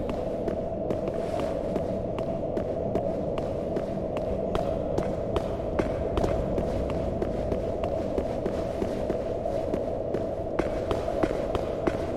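Armoured footsteps clank steadily on a stone floor.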